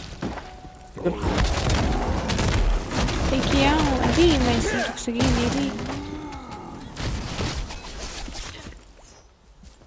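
Magic blasts and hits crackle and boom in a fight.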